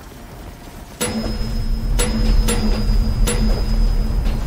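Upbeat game music plays with chiming notes.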